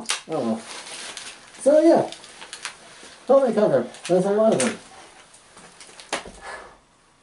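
Gear and a rifle clatter and knock as a man moves.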